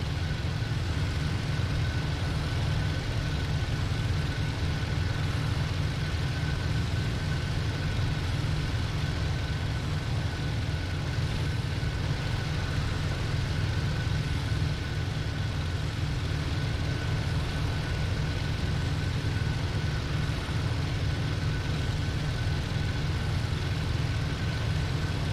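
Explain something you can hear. Wind rushes past the plane's canopy.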